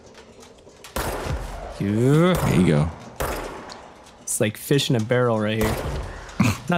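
Pistol shots ring out with a sharp crack and echo.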